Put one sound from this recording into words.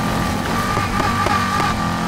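Tyres skid and scrape over dirt.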